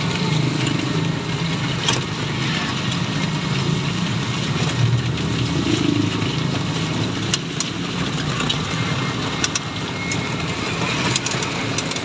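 Rain patters down heavily on a plastic cover.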